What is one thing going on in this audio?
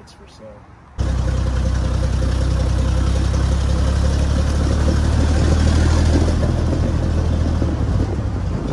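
A truck engine rumbles loudly as the truck drives along.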